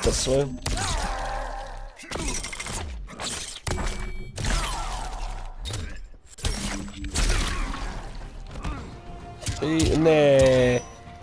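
Heavy blows land with loud, sharp thuds.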